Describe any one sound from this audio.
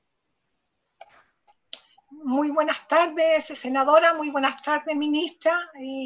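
An older woman speaks with animation over an online call.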